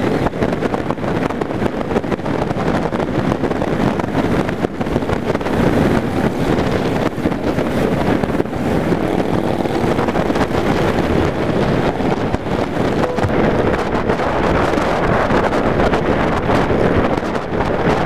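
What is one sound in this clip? Wind roars loudly past the rider.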